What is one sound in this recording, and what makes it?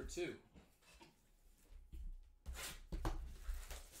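A cardboard box slides and scrapes across a table.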